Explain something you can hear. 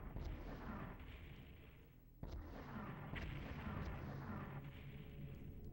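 A fireball whooshes past.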